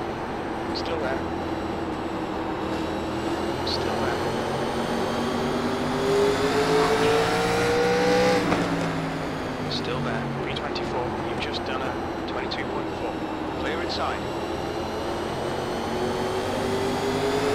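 Other race cars roar past close by.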